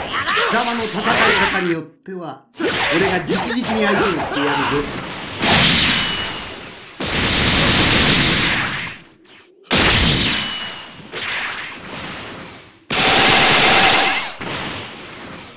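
Energy blasts whoosh and burst with loud rushing bursts.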